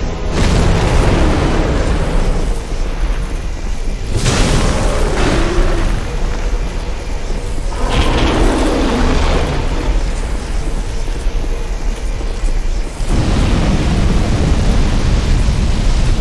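A sword swings and strikes with metallic clangs.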